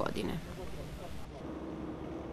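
A man talks with animation outdoors.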